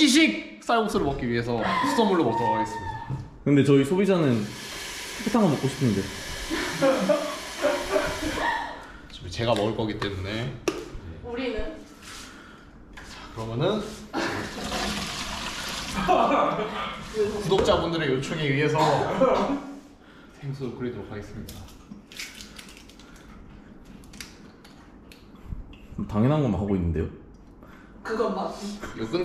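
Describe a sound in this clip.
A young man talks animatedly close by.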